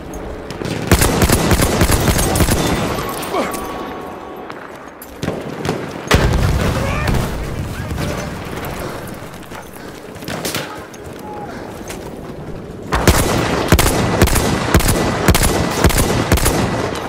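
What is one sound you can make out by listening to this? Rifle shots fire in quick bursts, loud and close.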